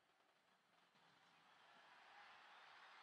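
A large crowd cheers faintly in a stadium.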